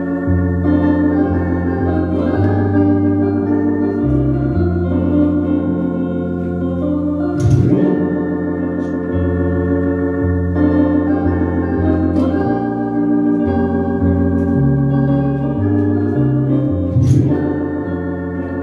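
An electronic organ plays a melody over sustained bass notes.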